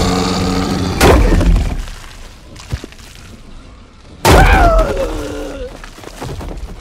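A blade chops wetly into a body with a loud splatter.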